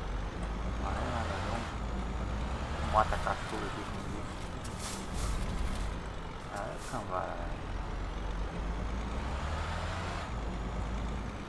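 A bus engine rumbles low and steady as the bus drives slowly.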